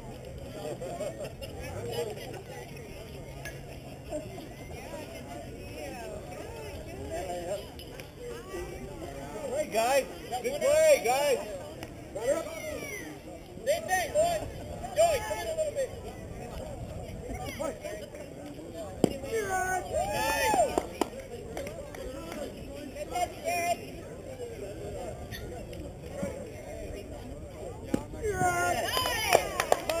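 Children and adults shout and cheer from around an open field, heard from a distance.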